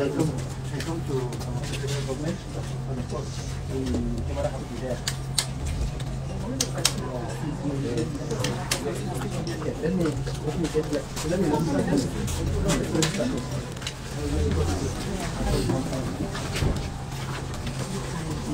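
A crowd of men and women talk and murmur nearby.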